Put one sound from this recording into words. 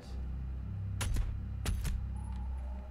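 A heavy gun fires in sharp blasts.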